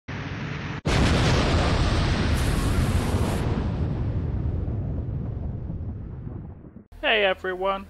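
A loud explosion booms and rumbles, slowly fading away.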